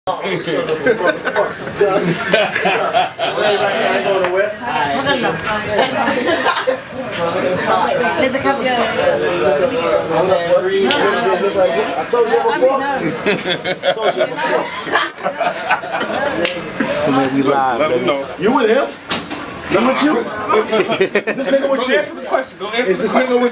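Several men talk and laugh loudly and excitedly close by.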